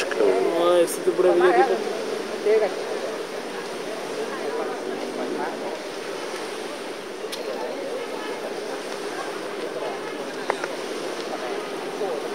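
Small waves wash softly onto a beach.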